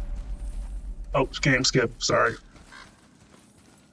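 Footsteps walk on stone.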